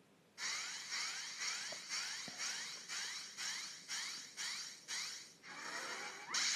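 A video game plays a quick series of chiming tones, each a little higher.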